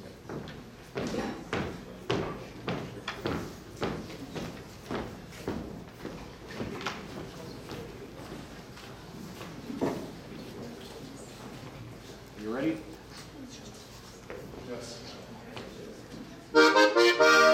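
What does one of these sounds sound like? Dancers stamp their feet on a wooden floor.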